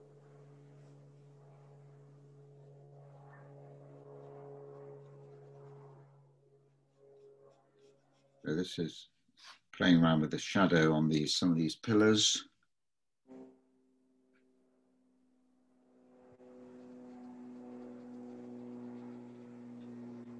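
A brush brushes softly on paper.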